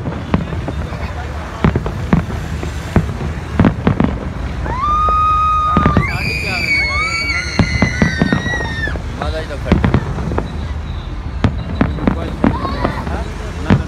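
Fireworks crackle and boom repeatedly in the distance.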